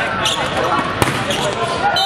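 A volleyball is struck with a loud smack.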